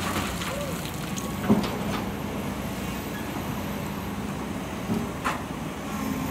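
An excavator bucket scrapes and digs into earth.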